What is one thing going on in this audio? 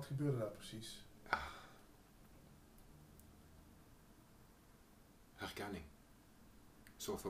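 A middle-aged man speaks calmly and haltingly, close by.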